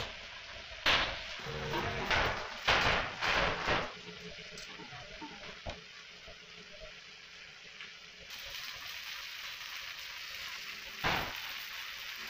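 A metal rod clinks and knocks against a tin.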